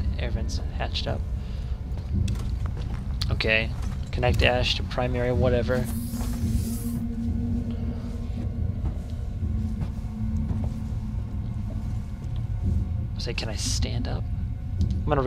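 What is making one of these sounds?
A young man speaks calmly into a close headset microphone.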